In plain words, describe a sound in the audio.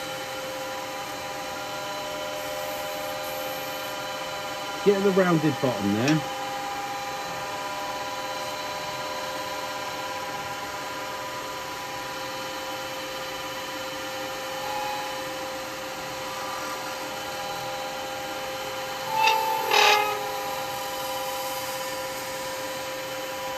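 A chisel scrapes and shaves wood on a spinning lathe.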